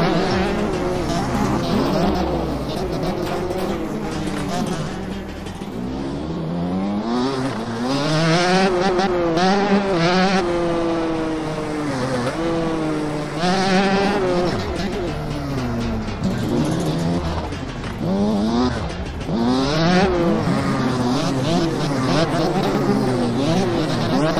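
A motorcycle engine revs up and down.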